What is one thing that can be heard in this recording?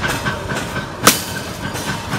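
A machete chops through a thin branch with a sharp crack.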